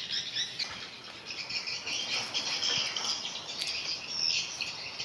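A hand presses a wet fish against a plant stalk with a soft squelch.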